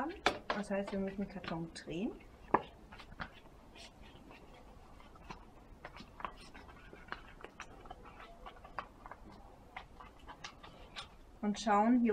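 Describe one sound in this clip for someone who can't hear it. A paper box crinkles and rustles in hands.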